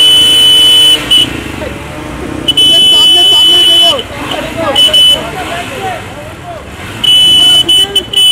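A car horn honks loudly in long repeated blasts.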